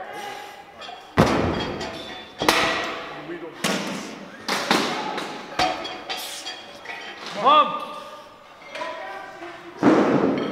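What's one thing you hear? A man grunts and strains with effort.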